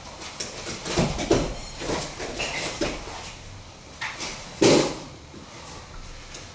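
Bodies thud onto a padded mat.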